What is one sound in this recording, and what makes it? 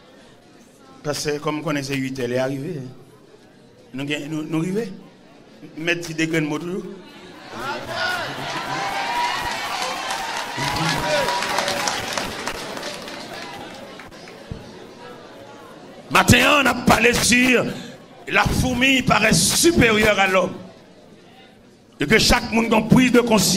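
A man speaks with animation in a loud, preaching voice.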